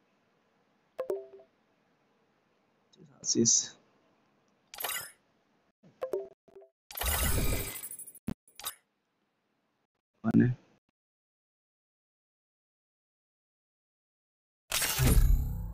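Short electronic chimes and whooshes sound as game menus change.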